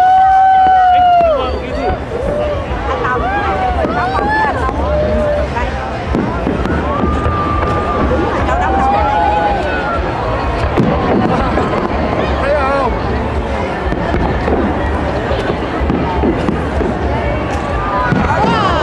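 Fireworks pop and crackle overhead.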